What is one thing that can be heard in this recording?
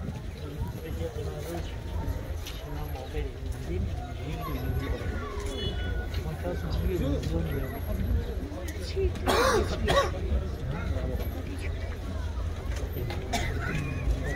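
A large crowd of men murmurs and talks outdoors.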